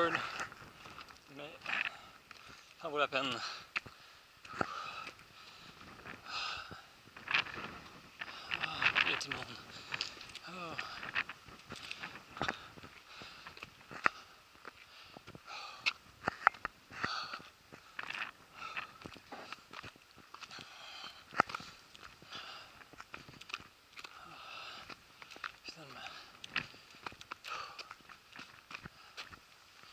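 Footsteps crunch and scrape on rock and gravel outdoors.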